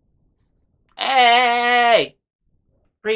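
A young man draws out a long, rising and falling cry.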